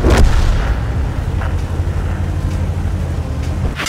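Tank tracks clatter over dirt.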